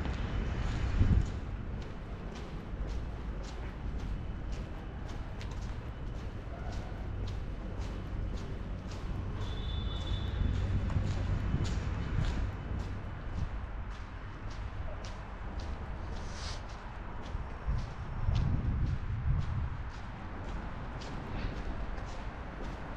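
Footsteps tap steadily on paving stones outdoors.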